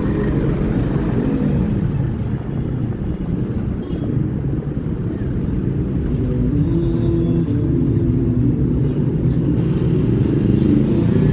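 A motorcycle engine idles and rumbles close by.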